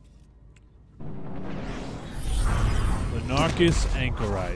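A spaceship roars as it leaps into hyperspace.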